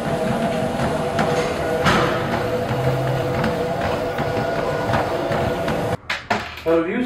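Feet thud on a moving treadmill belt.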